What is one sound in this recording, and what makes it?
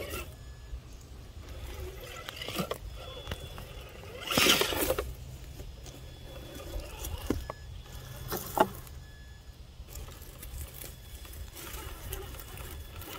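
Plastic tyres scrape and knock against rocks.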